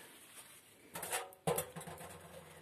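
Glasses clink against each other in a sink.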